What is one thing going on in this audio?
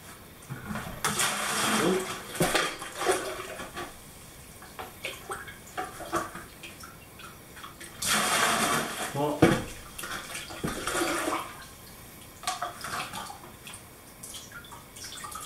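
Water pours and splashes into a bucket.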